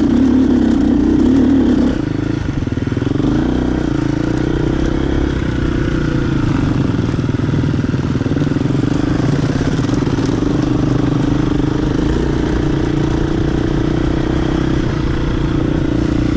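A dirt bike engine drones up close.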